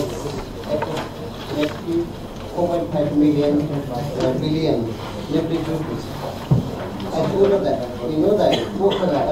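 A middle-aged man speaks calmly into a microphone.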